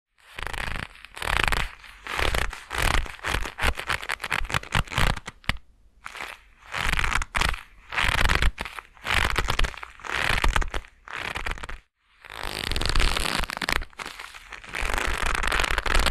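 Leather gloves rub and crinkle close to a microphone.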